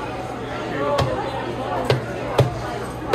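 Serving trays clatter and knock against a metal counter.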